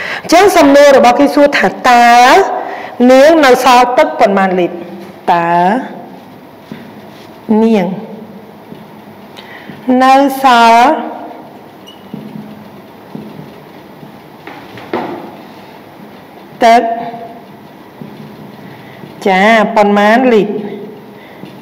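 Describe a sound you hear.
A woman speaks clearly and calmly through a microphone, in short phrases with pauses.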